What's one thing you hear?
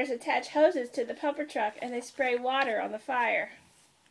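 A book page is turned over.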